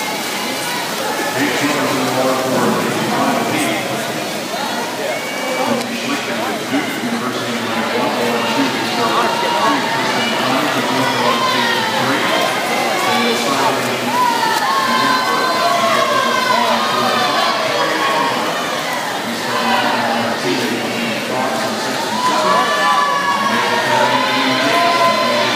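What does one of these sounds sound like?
A crowd cheers and shouts loudly in a large echoing hall.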